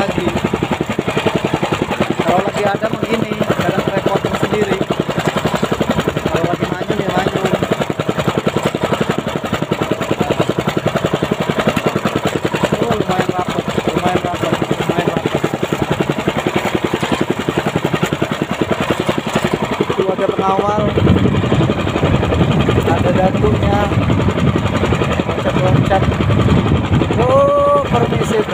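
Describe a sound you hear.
Water splashes against a moving boat.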